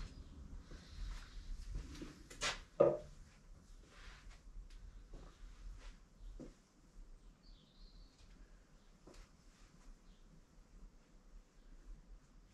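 Footsteps shuffle on a hard floor nearby.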